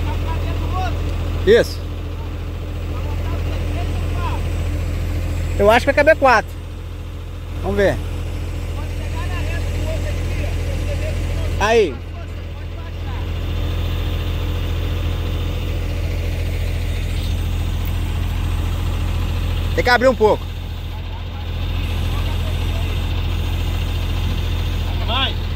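A truck engine idles with a steady low hum nearby.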